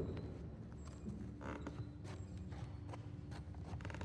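Footsteps climb wooden stairs.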